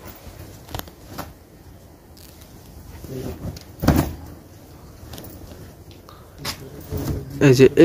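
Fabric rustles as cloth is unfolded.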